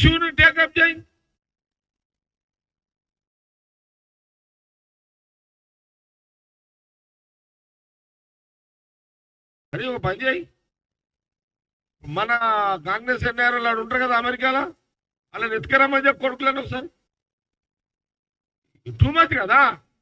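A middle-aged man speaks forcefully into a microphone, with long pauses.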